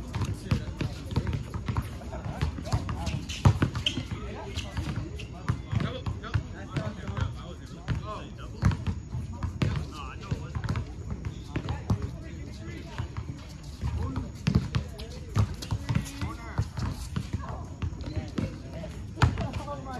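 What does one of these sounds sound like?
A basketball bounces on an asphalt court outdoors.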